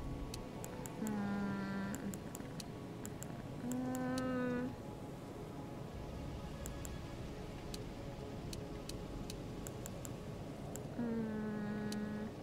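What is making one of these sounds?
A young woman sings short held notes close to a microphone.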